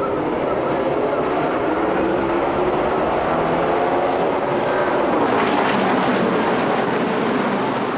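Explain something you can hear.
A pack of race car engines roars loudly and steadily as the cars accelerate.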